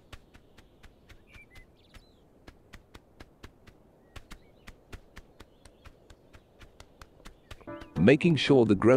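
Webbed feet patter quickly on the ground.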